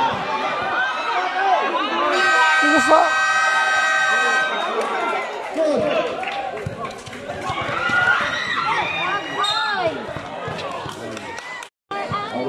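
A crowd of spectators chatters and cheers nearby.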